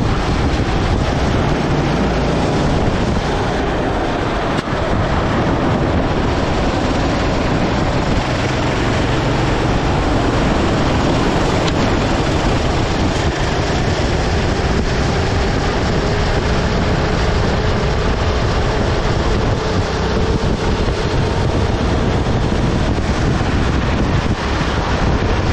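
A go-kart engine buzzes loudly up close, rising and falling as it speeds up and slows down.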